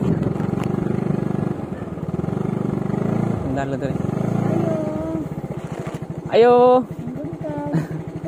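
A motor scooter engine putters steadily at low speed.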